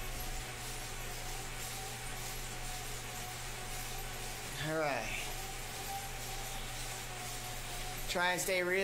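An indoor bike trainer hums steadily.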